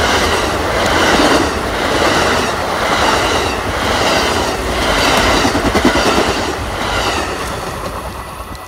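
A passenger train rumbles past close by, its wheels clacking rhythmically on the rails.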